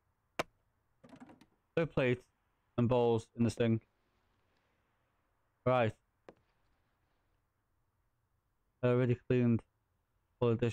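A man talks into a microphone in short bursts.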